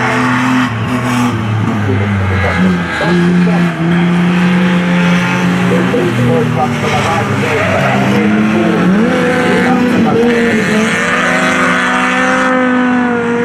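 Racing car engines roar loudly outdoors, revving up and down as the cars race past.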